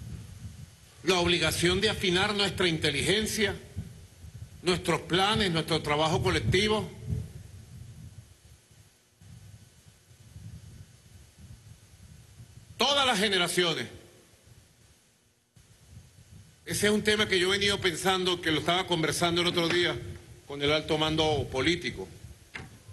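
A man speaks into a microphone in calm, measured bursts.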